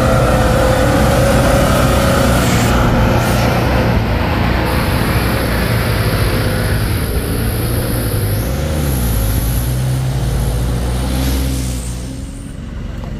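A heavy truck engine rumbles and roars loudly close by.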